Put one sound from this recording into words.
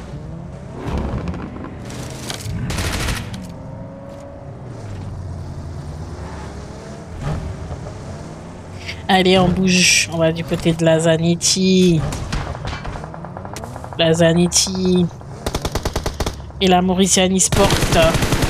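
A car engine hums and revs as the car drives over rough ground.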